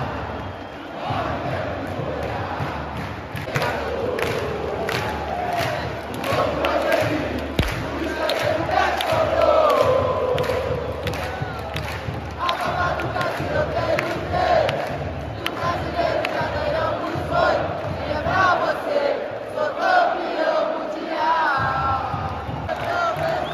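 Fans clap their hands in rhythm close by.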